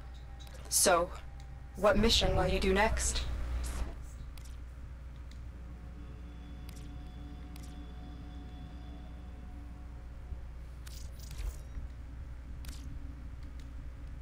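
Short electronic clicks sound as menu buttons are pressed.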